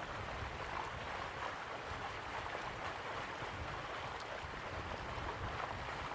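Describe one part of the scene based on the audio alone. Water from a waterfall rushes steadily in the distance.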